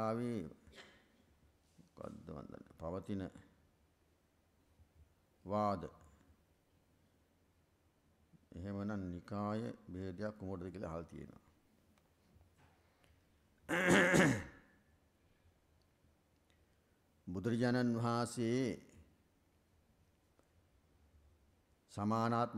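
A middle-aged man speaks slowly and calmly into a microphone, with long pauses between phrases.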